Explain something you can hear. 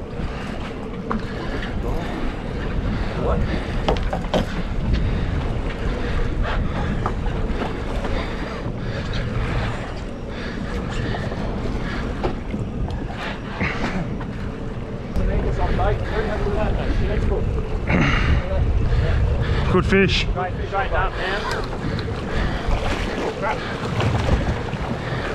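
Waves and boat wake splash steadily.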